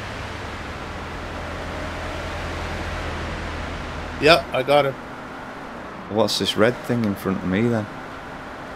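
A car engine hums steadily at speed.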